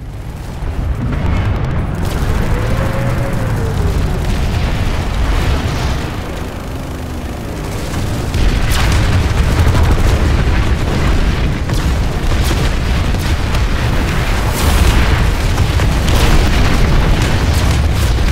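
A heavy armoured vehicle's engine rumbles and roars as it drives over snow.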